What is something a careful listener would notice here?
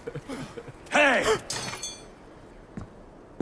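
A man shouts out loudly.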